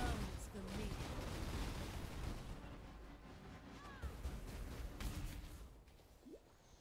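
Magic spells crackle and explode in rapid bursts.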